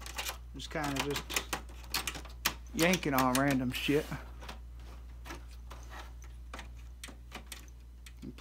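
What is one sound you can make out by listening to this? Plastic parts click and knock as hands work inside a computer case.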